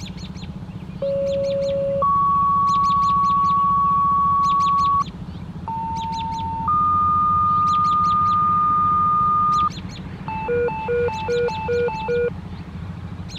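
Loud steady electronic tones blare from an outdoor loudspeaker, one pair of long tones then rapid high-low beeps.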